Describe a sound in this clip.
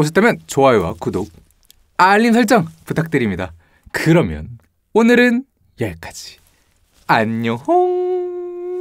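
A young man talks cheerfully and with animation close to a microphone.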